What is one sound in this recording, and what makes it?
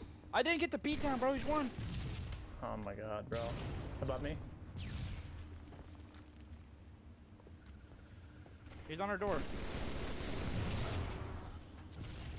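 Gunfire from a video game rattles in short bursts.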